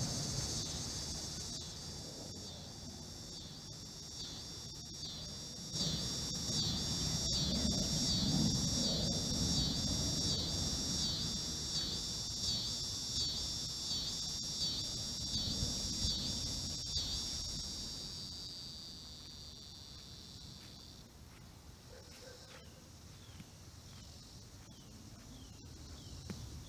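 A golf club strikes a ball with a sharp crack, again and again.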